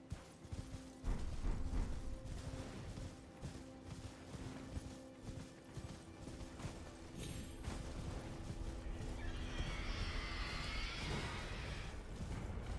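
Footsteps run over grass and earth.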